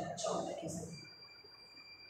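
Chalk scratches and taps on a blackboard.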